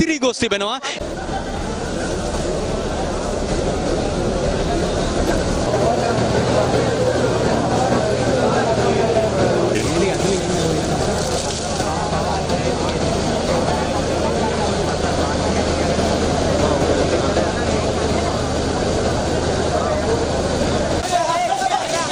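Fire hoses spray water in a strong rushing stream.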